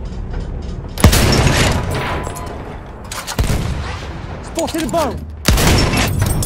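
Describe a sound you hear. A heavy gun fires with deep, booming blasts.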